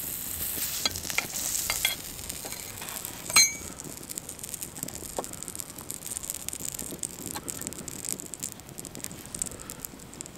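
Small stone chips click and clink against a metal plate.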